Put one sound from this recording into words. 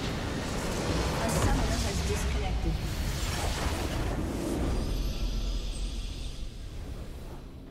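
A huge structure explodes with a deep rumbling roar.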